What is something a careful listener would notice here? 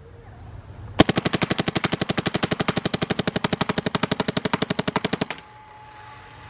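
A paintball marker fires a rapid burst of shots.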